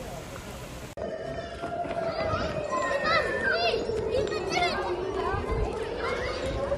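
Young children shout and call out as they run.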